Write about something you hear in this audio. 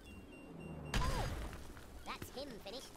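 A deep explosion booms and rumbles briefly.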